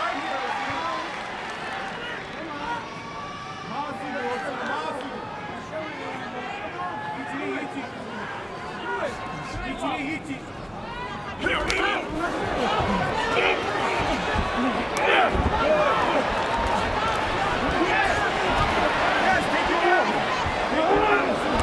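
A large arena crowd murmurs and cheers loudly.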